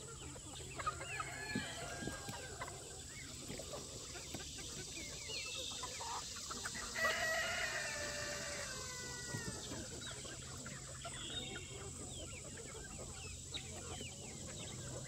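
Chickens cluck and chatter outdoors.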